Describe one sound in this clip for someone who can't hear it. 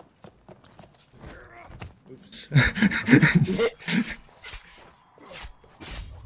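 A blunt weapon thuds into a body.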